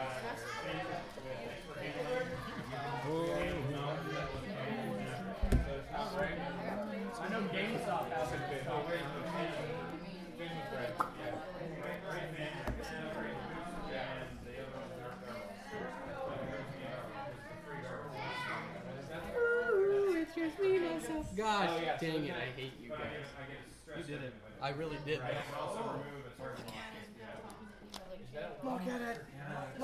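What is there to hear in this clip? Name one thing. A young man talks casually nearby.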